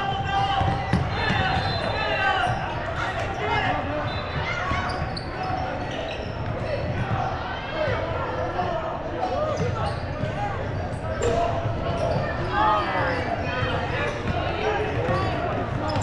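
A basketball bounces on a hardwood floor.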